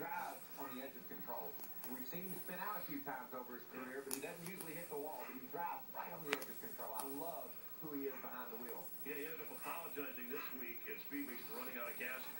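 A dog chews and tugs at a soft blanket.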